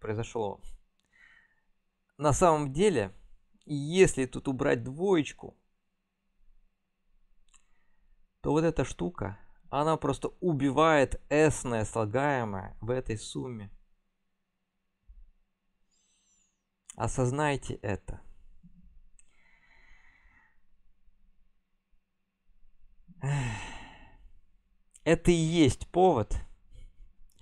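A young man talks calmly and explains, close to a microphone, with pauses.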